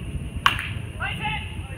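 Young players shout from across the field.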